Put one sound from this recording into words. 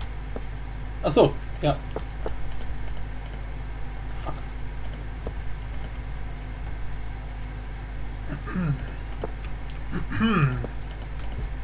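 A man speaks briefly and casually, close to a microphone.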